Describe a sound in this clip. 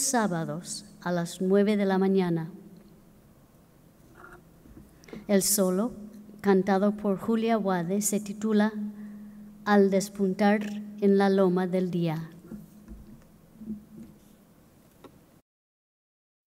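A woman sings into a microphone in a large echoing hall.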